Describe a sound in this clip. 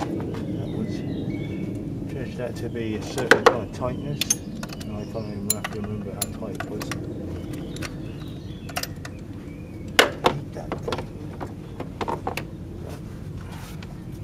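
Metal tools clink against engine parts.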